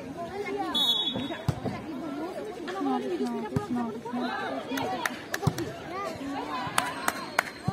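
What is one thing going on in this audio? A volleyball is struck with sharp thuds.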